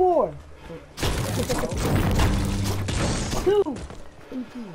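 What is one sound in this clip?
A pickaxe chops at wood with quick, heavy blows.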